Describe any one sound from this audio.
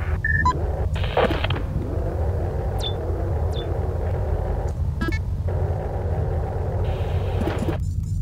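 A low electronic hum drones steadily.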